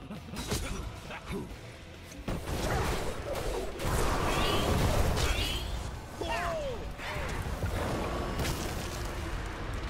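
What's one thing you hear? Fantasy game combat sounds clash and crackle with magic blasts.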